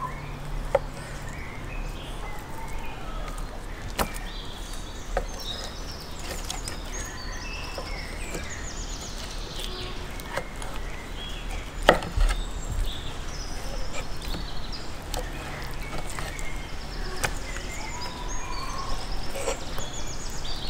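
A knife slices through raw beef heart on a wooden cutting board.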